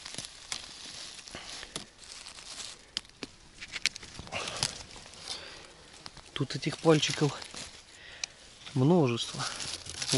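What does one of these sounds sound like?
Dry leaves and twigs rustle and crackle close by.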